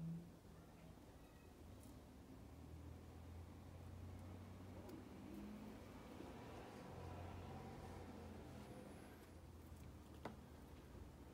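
A stone blade scrapes against a small piece of bone.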